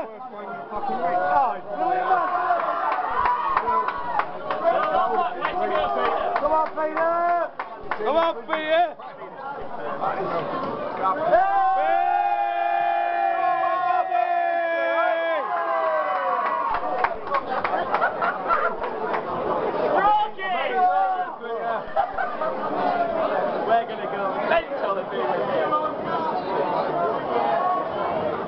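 A crowd of men and women chatters all around in a large, busy room.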